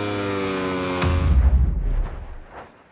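A racing motorcycle engine rumbles low and fades away.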